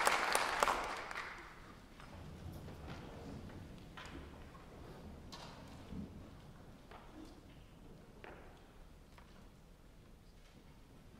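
Orchestra players shift and tap softly in a large echoing hall.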